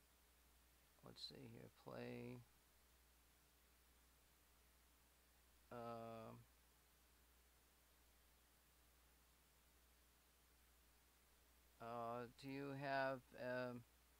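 A young man speaks casually in short bursts, close to a microphone.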